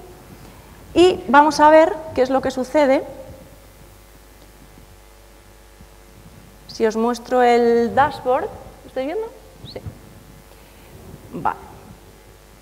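A woman speaks through a microphone in short bursts with pauses.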